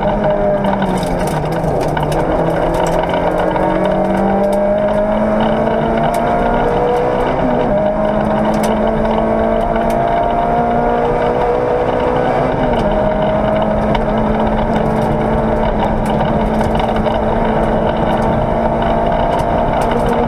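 Gravel and road noise rumble under the tyres.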